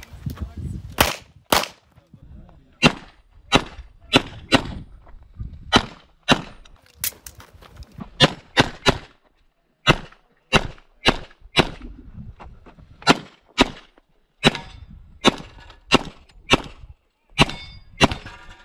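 Pistol shots crack sharply in quick bursts outdoors.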